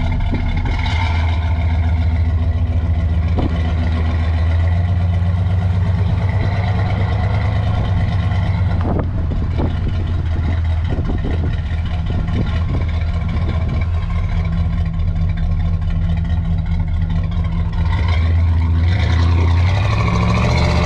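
A car engine rumbles deeply and steadily up close.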